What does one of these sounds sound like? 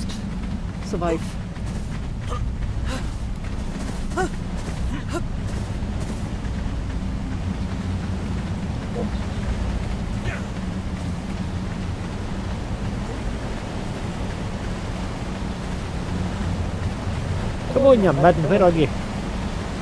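Footsteps tread on rocky ground.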